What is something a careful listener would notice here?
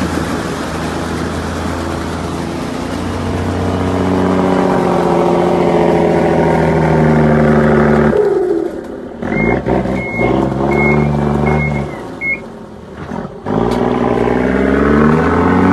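A bus engine roars and revs hard, rising and falling in bursts.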